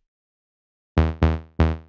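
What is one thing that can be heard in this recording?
A synthesizer plays three short, bright pitched notes.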